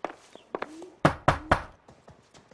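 A man knocks firmly on a wooden door.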